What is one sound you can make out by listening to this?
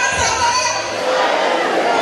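A crowd of men laughs.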